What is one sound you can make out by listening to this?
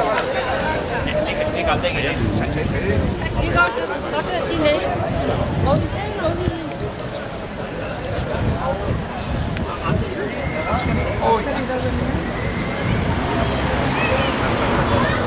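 A crowd of men and women chatter nearby outdoors.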